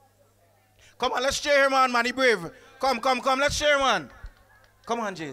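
A man speaks loudly and with animation into a microphone.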